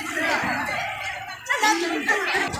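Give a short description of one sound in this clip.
Young girls speak together close by.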